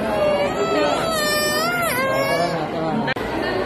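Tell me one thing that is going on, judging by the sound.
A young child squeals close by.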